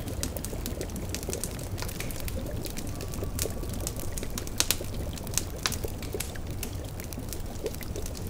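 A cauldron bubbles.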